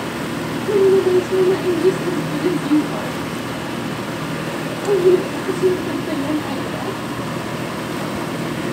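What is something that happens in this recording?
A pot of soup boils and bubbles steadily.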